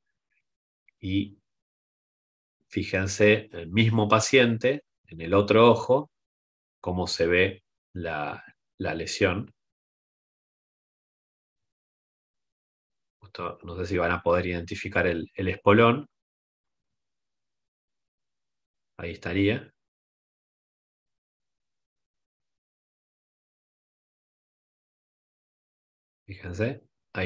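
A man speaks calmly over an online call, in bursts with pauses.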